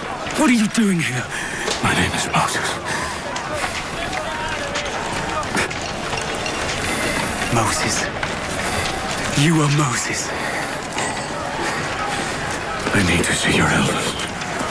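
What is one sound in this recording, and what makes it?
An older man answers slowly and hoarsely, close by.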